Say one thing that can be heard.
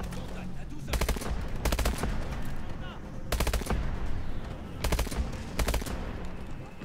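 A rifle fires in rapid bursts, loud and close.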